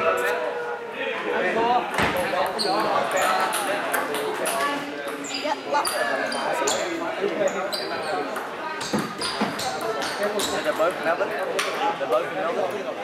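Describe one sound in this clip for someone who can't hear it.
Several people talk in the background of a large echoing hall.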